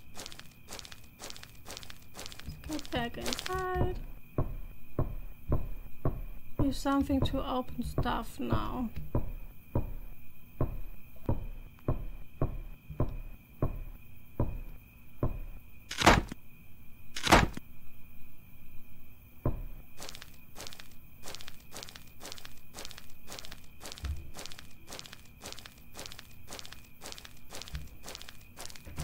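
Footsteps fall at a steady walking pace.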